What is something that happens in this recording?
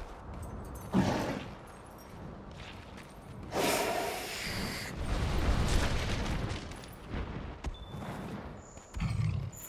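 A large monster growls and roars.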